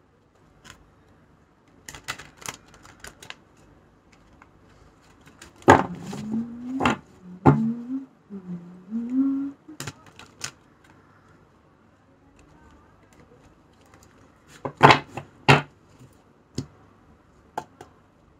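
Cards rustle and tap as hands shuffle a deck.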